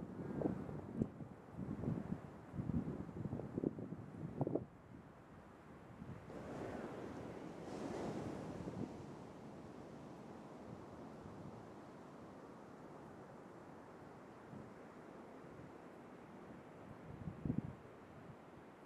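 An elephant seal snorts and grumbles in low, rough bursts nearby.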